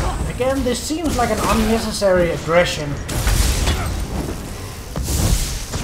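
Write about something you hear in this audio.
Magic blasts burst and hiss.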